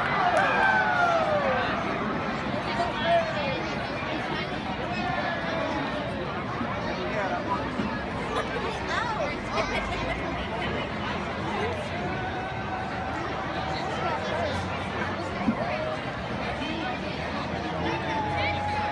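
A large crowd of spectators chatters and calls out outdoors.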